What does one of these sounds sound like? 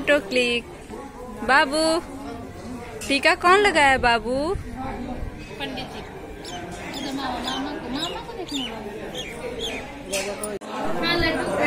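A woman talks to children close by, calmly.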